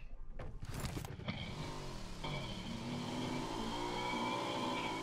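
A motorbike engine revs and hums.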